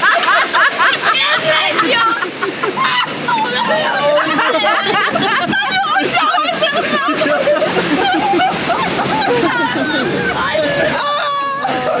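A young man shouts and screams with excitement.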